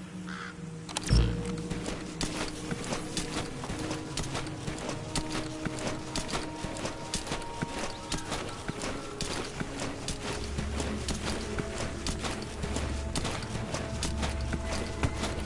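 A person crawls over gravel and dirt with scraping, rustling steps.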